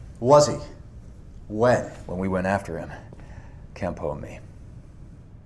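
A young man speaks calmly and quietly.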